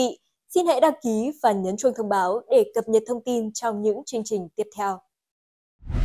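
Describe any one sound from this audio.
A young woman speaks clearly and evenly into a microphone.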